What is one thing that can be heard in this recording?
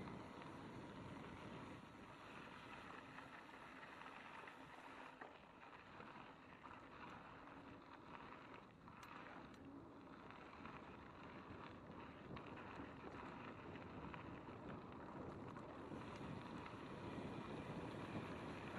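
Bicycle tyres crunch and rumble over a bumpy dirt trail.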